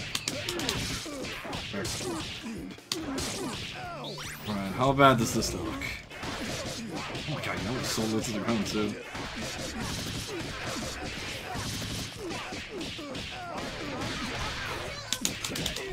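Fighting game blows land with quick, sharp smacks.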